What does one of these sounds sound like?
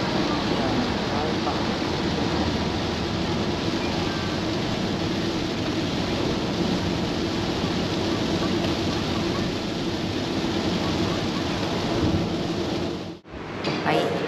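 Heavy rain drums on a car's windscreen.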